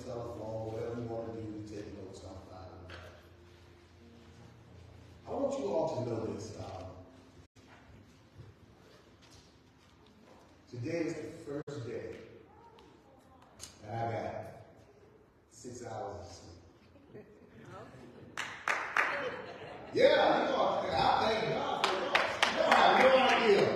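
A man speaks slowly and with feeling through a microphone in a large echoing hall.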